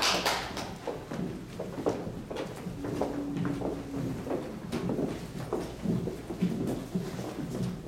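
Footsteps shuffle across a wooden stage as a group walks off.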